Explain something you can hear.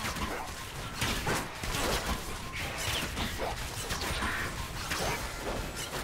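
Magic spells whoosh and burst in a fast fight.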